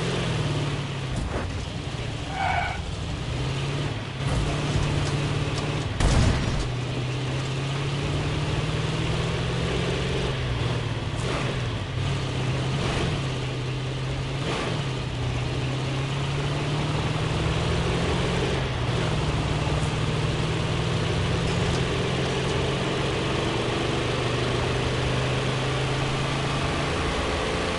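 A truck engine rumbles steadily, changing pitch as it drives.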